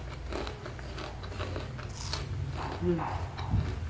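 Fingers squish and scoop rice on a plate.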